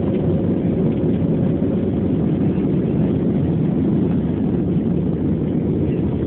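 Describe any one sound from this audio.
Wheels rumble over a runway.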